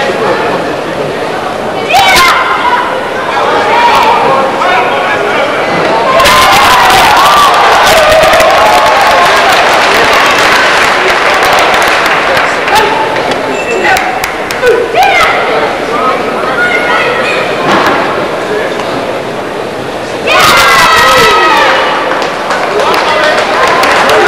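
A large crowd cheers and chatters in an echoing hall.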